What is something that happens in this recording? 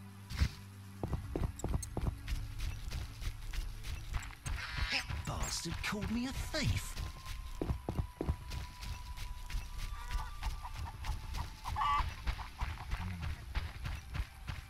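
Footsteps thud steadily on soft ground.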